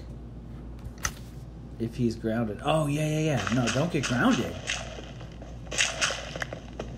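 Dirt crumbles in short bursts as blocks are dug away.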